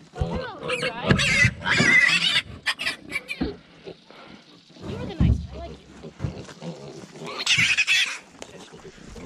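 A piglet squeals loudly.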